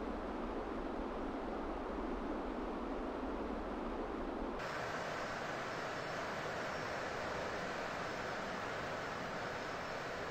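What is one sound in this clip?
Air rushes steadily past a glider in flight.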